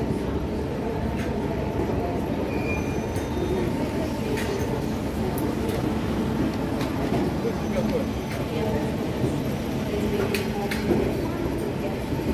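Suitcase wheels roll over a hard floor.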